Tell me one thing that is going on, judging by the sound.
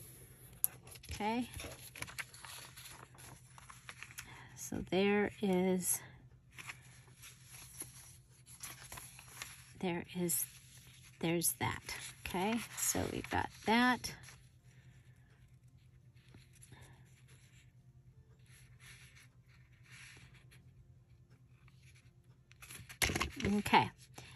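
Paper rustles and slides softly as a card is handled and folded.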